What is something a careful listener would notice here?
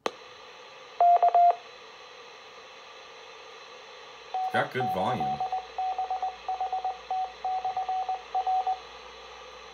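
A radio beeps in a quick repeating pattern.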